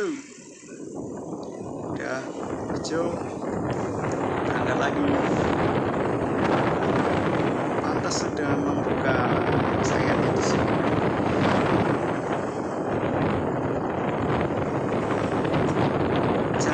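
Wind rushes loudly past a moving motorbike.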